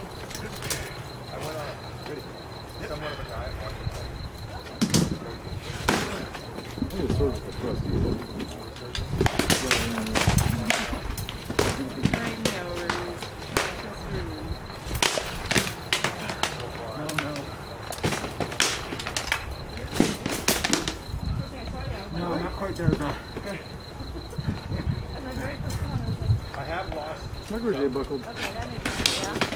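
Men grunt and shout with effort close by.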